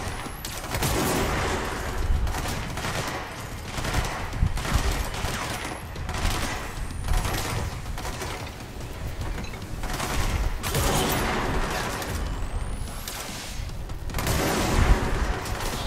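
Objects burst apart with crackling debris.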